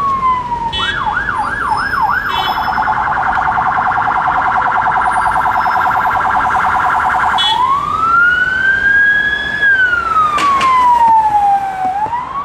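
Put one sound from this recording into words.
A police siren wails close by, switching between fast and slow patterns.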